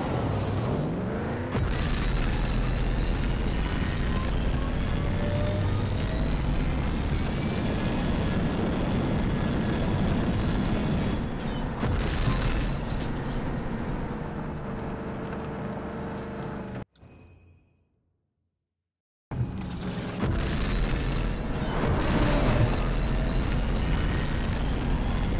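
A vehicle engine roars steadily as a buggy speeds along.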